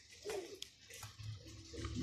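A pigeon coos softly nearby.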